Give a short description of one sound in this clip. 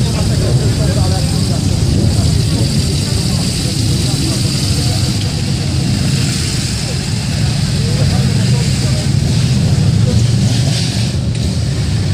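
Many motorcycle engines idle and rumble steadily close by.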